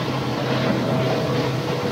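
Water splashes and sprays against a moving boat.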